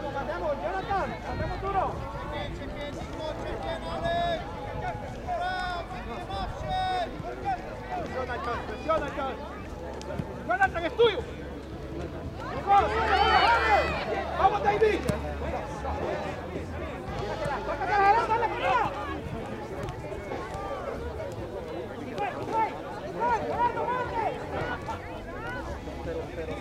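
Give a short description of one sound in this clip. Players and spectators shout and call out across an open field outdoors.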